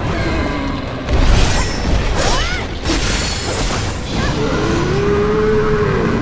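Heavy blows thud and crash in a fight.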